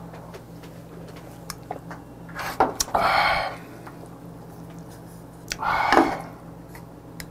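A man gulps down a drink and sighs loudly into a close microphone.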